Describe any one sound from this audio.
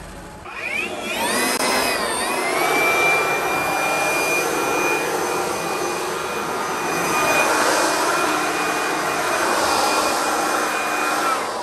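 A cordless leaf blower whines, blowing sawdust off a log.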